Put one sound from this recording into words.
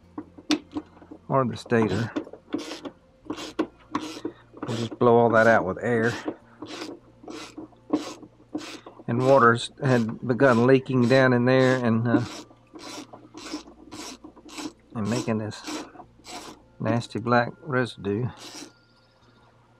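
A ratchet wrench clicks rapidly as it turns a bolt.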